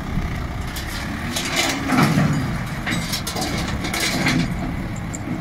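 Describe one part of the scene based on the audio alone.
Metal ramps clank under heavy wheels.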